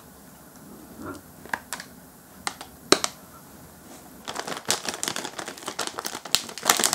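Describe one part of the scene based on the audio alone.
A plastic package rustles and crackles in hands.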